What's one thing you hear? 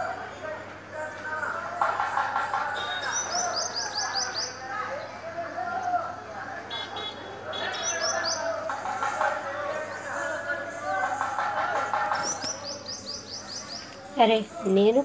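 Men talk and call out on a street below, heard from a distance.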